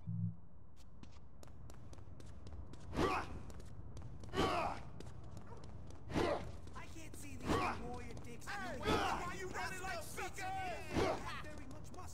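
Running footsteps slap on pavement.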